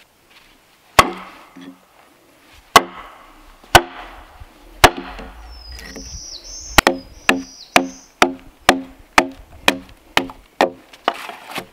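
An axe chops into a log with sharp, ringing blows.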